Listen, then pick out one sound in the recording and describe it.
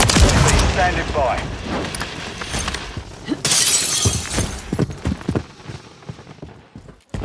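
Gunshots fire in quick bursts with sharp cracks.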